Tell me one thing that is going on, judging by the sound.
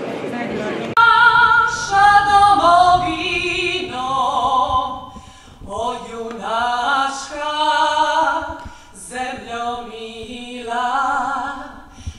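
A woman sings into a microphone, amplified through loudspeakers in a large hall.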